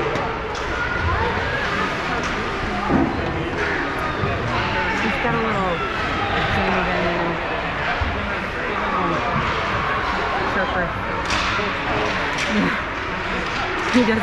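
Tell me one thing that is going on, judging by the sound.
Children shout and call out to each other in a large echoing hall.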